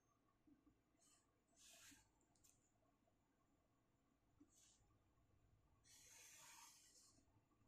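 A marker pen squeaks and scratches across paper in short strokes.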